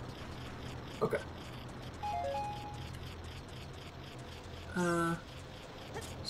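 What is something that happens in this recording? Game sound effects chime and beep.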